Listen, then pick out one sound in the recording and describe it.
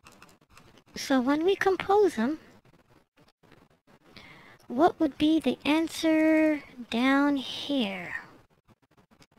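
A child speaks clearly and calmly, close to a microphone.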